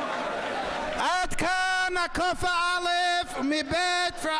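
A man sings loudly into a microphone.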